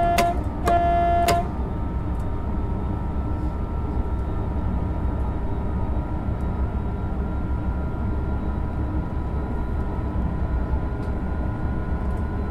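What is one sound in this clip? An electric train motor hums with a steady whine.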